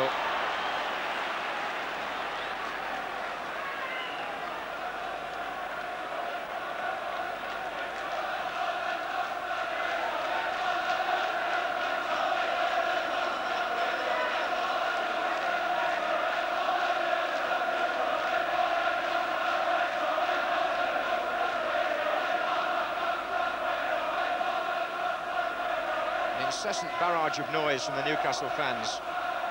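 A large stadium crowd chants and sings loudly, growing louder.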